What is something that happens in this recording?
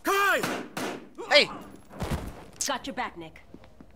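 A pistol fires a single shot.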